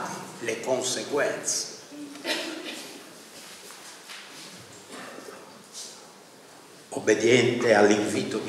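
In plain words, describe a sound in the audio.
An elderly man speaks calmly into a microphone, with pauses.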